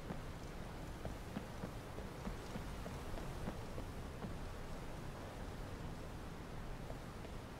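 Footsteps crunch on snowy stone at a steady walking pace.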